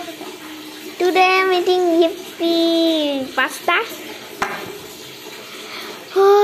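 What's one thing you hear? A young girl speaks in a high, sing-song voice close to the microphone.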